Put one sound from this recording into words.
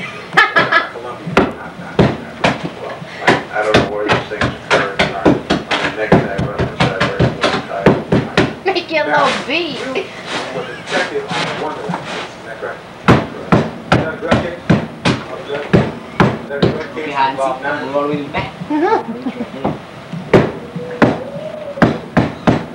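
A man knocks and taps sharply on the floor.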